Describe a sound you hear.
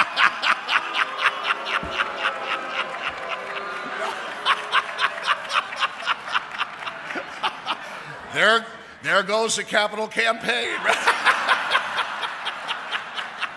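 An elderly man laughs heartily into a microphone.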